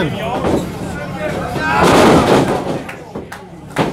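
A wrestler slams onto the mat with a loud thud.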